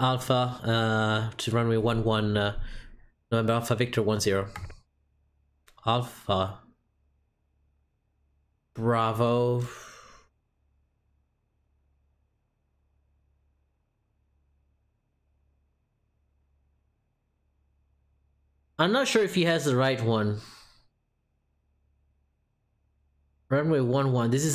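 A young man talks casually into a close microphone, in bursts with pauses.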